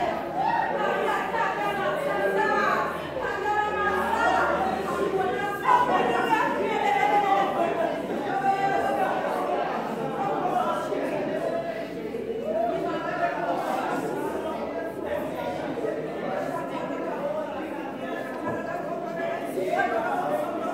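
A man preaches loudly and with fervour over a loudspeaker in a large echoing hall.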